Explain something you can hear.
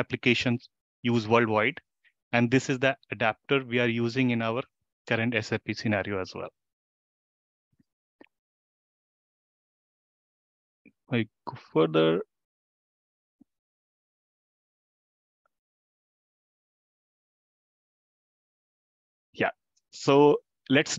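A man speaks calmly through an online call, pausing now and then.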